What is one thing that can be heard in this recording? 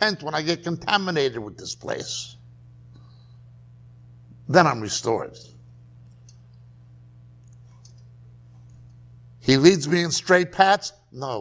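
A middle-aged man speaks calmly in bursts with long pauses, close by.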